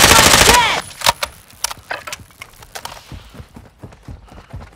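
Scattered gunshots crack and echo at a distance.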